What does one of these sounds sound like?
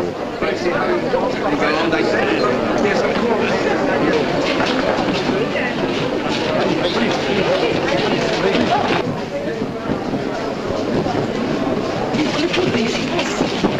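A crowd of men and women chatter and call out all around.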